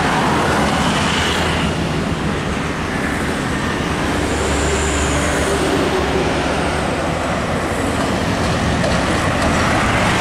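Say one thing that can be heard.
A car drives past with tyres hissing on the road.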